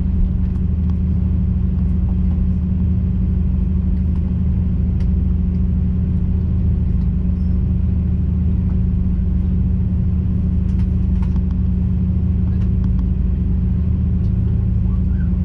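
A jet airliner's engines drone as it taxis, heard from inside the cabin.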